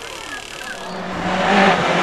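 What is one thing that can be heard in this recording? A car crashes into a tree with a thud.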